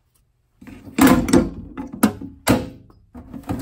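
Metal hammers clank against each other in a drawer.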